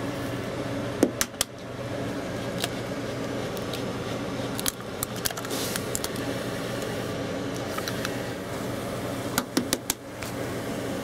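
An egg cracks sharply against a hard rim.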